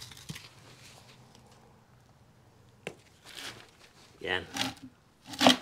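Gloved hands scrape and rustle through loose potting soil.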